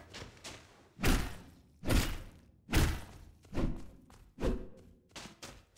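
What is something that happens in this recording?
A turkey is struck with heavy, repeated blows.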